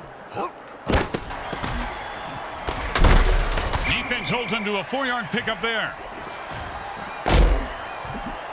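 Armoured players crash into each other with heavy thuds.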